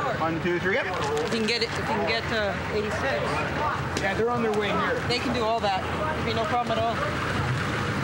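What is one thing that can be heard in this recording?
Men talk and shout close by.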